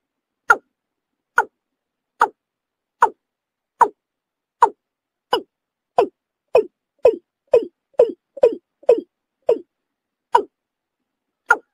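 A bird calls with sharp, repeated croaking notes that come faster toward the middle.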